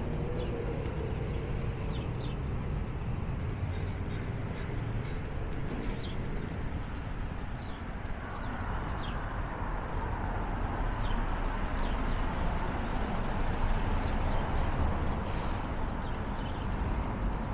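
Cars drive past on a street outdoors with a steady low rumble.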